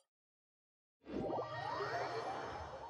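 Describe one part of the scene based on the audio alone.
A magical whoosh swells up and rings on as a game character teleports.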